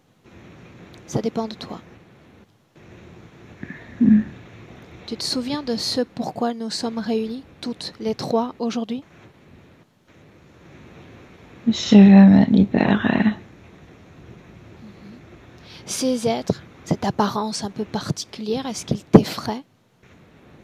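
A woman speaks with animation over a headset microphone on an online call.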